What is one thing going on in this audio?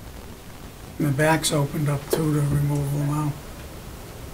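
A man speaks loudly and clearly nearby.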